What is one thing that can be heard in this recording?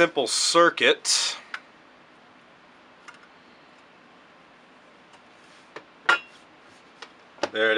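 A small plastic box clicks and knocks as hands handle it.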